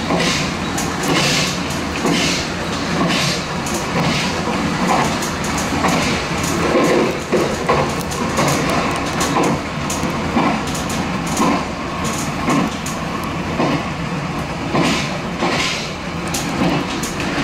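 Train wheels clack over rail joints and points.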